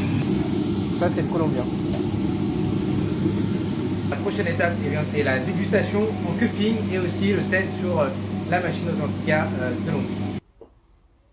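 A young man speaks calmly close to a microphone.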